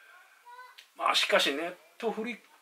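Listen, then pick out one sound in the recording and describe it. A middle-aged man speaks briefly and calmly, close by.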